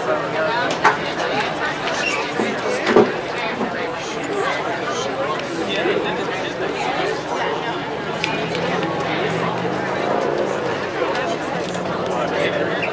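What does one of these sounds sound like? A crowd of spectators chatters steadily outdoors.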